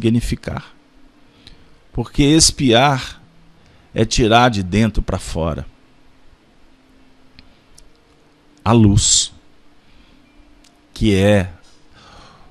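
A man speaks calmly and clearly into a microphone, in short phrases with pauses.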